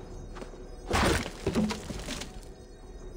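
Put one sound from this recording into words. Wood crashes and splinters.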